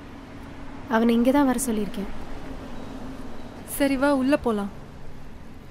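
A young woman speaks briefly while walking.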